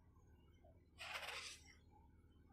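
Powder pours with a soft hiss into a plastic jar.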